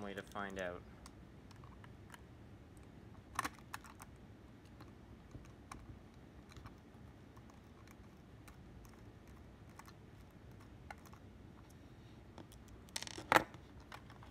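A small screwdriver clicks and scrapes against a plastic model.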